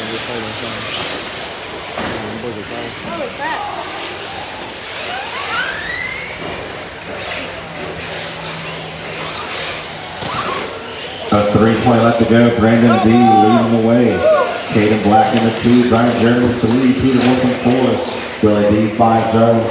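Small electric model cars whine and whir as they race around the track.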